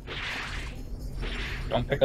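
A quick whoosh sweeps past.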